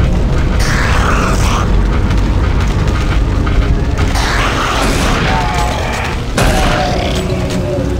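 A creature snarls and growls.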